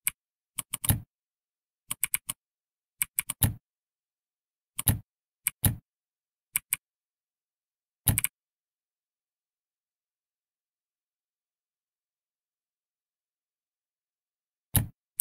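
Keys clack in quick bursts on a computer keyboard.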